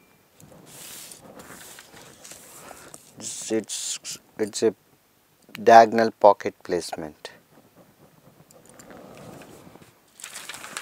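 Paper rustles and crinkles.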